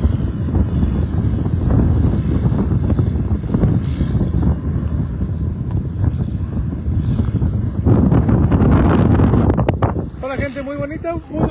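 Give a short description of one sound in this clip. Wind blows hard and rumbles outdoors.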